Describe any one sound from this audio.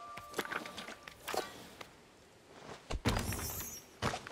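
A shovel digs into soil with a rustle.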